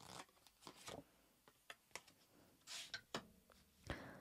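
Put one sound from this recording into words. A card slides and taps softly onto a table.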